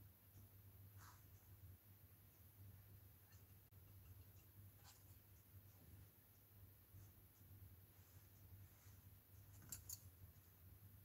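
Paintbrushes click softly against a tabletop.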